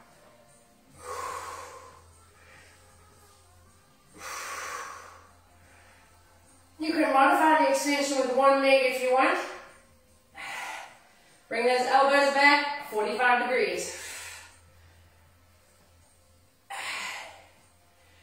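A young woman exhales hard with effort.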